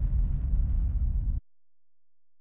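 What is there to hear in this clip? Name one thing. A craft's engine rumbles low.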